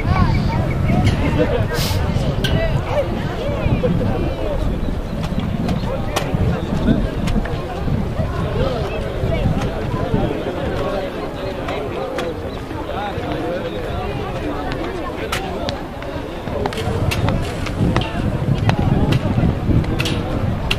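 Players call and shout to each other across an open field in the distance.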